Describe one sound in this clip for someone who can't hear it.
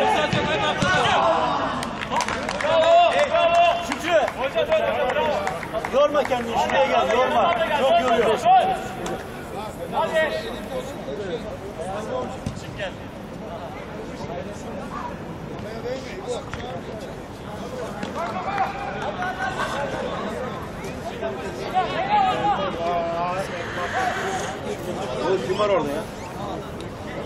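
Young men shout and call to each other across an open pitch outdoors.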